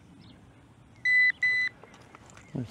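A metal detector beeps in short steady tones.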